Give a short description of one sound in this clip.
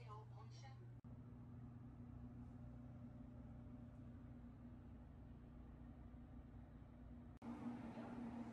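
A train rumbles with a steady low hum.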